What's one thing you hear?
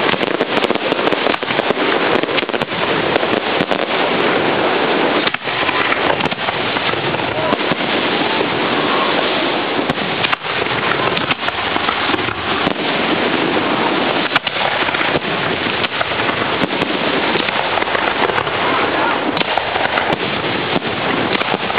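Fireworks crackle and sizzle steadily.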